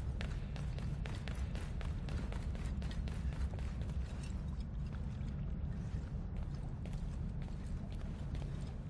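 Footsteps run quickly over hard stone.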